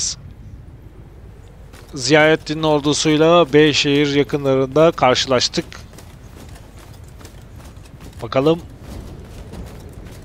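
Many soldiers' footsteps tramp across grass.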